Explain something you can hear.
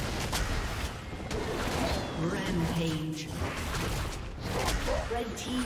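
Game spell effects whoosh and crackle during a fast fight.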